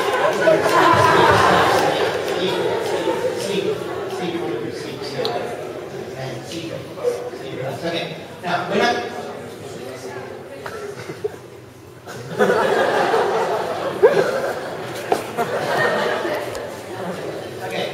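Young people talk and laugh loudly close by in an echoing room.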